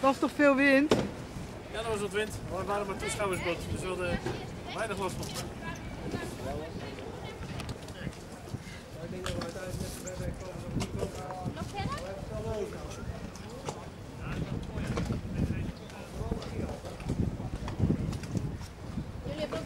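Water laps against boat hulls.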